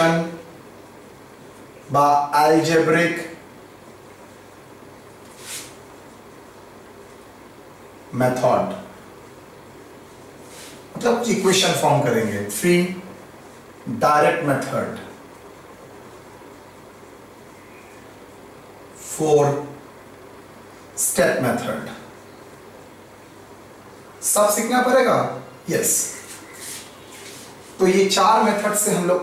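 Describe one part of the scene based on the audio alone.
A man speaks calmly in short bursts, as if explaining.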